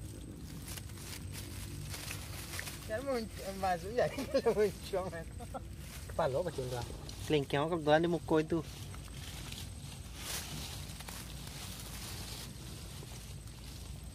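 A plastic bag rustles.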